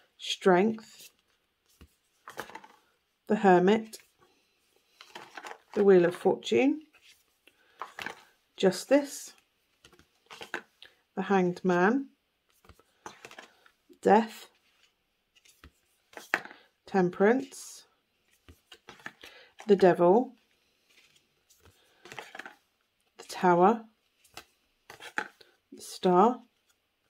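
Stiff cards slide and flick against each other in hands.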